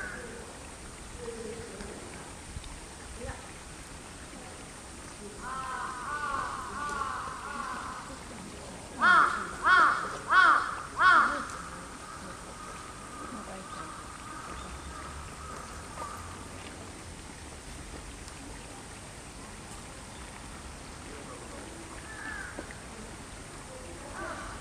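A large animal rustles through grass.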